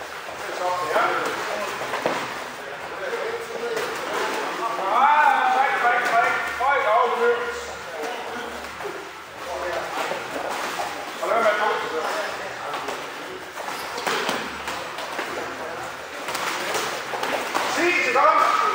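A man speaks calmly and clearly, close by, in a large echoing hall.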